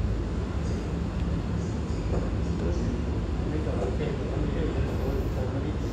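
A boat engine rumbles low and steadily.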